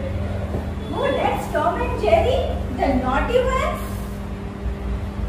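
Women talk and exclaim with animation.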